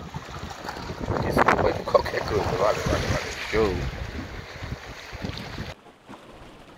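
A man talks with animation close to a microphone, outdoors in wind.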